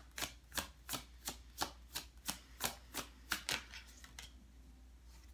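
Cards are flicked and shuffled quickly by hand, close by.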